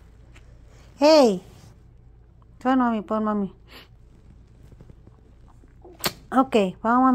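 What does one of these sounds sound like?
A small dog whines close by in short, high, wavering cries.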